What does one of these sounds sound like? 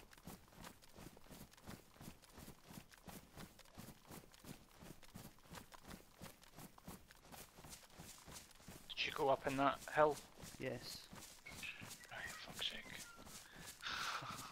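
Footsteps swish quickly through grass and undergrowth.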